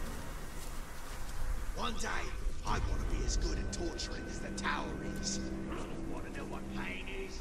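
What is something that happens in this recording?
Footsteps crunch on dirt and dry leaves.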